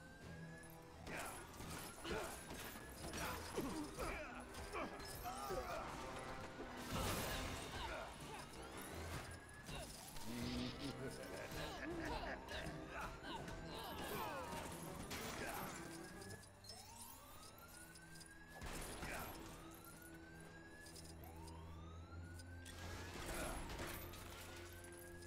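Small figures clatter and break apart with rapid crashes and clinks.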